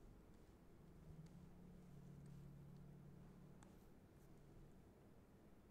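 A man murmurs softly and quietly, close to a microphone.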